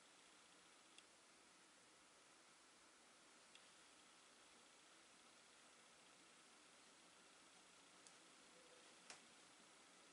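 A crochet hook clicks softly now and then.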